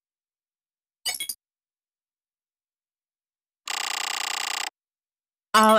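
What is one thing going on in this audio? Electronic menu sounds blip and chime.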